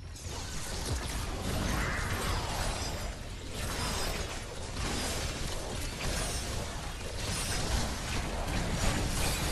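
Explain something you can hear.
Gunfire and energy blasts crackle and boom in a fight.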